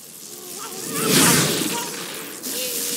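An electric crackle bursts suddenly and fades.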